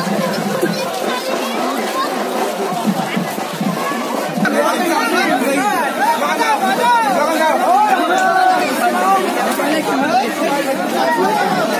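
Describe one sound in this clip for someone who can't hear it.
A crowd of men talks and shouts loudly.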